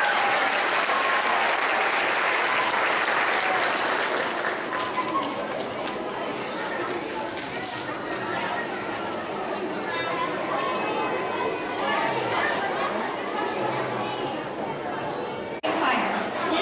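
A crowd of children chatters and calls out.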